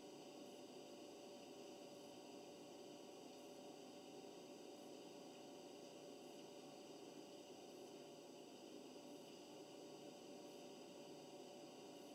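Music plays steadily from a stereo.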